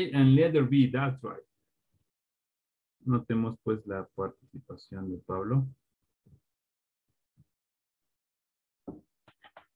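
A man speaks calmly over an online call, with short pauses.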